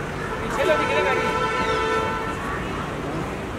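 A young woman calls out loudly nearby.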